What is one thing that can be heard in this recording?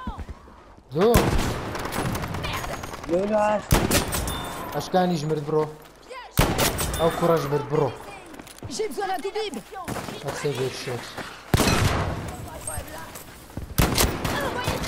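A rifle fires sharp, loud shots every few seconds.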